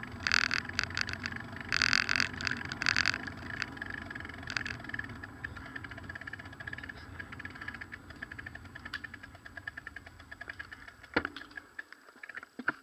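Wind rumbles steadily outdoors past a moving bicycle.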